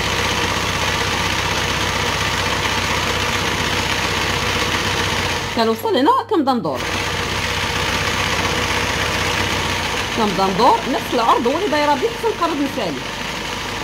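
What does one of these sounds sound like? A sewing machine stitches through fabric.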